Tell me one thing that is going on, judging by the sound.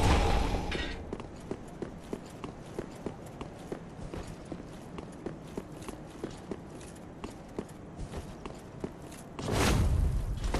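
Armoured footsteps clank at a steady pace on stone.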